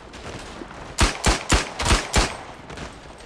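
A pistol fires several quick shots close by.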